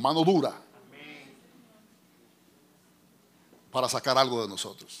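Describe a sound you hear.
A middle-aged man speaks with animation into a microphone.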